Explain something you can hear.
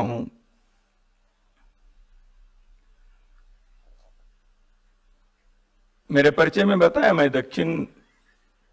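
A middle-aged man speaks with emphasis into a microphone, with pauses between phrases.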